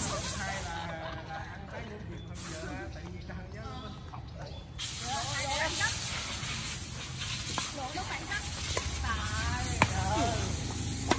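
Adult men and women chat and call out nearby outdoors.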